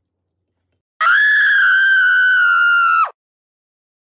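A young boy screams loudly in a high voice.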